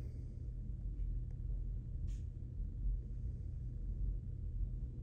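A low, steady rumble hums close by.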